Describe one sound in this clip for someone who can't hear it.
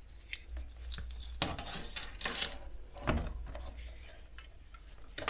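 Plastic tubing rustles and scrapes as hands handle it.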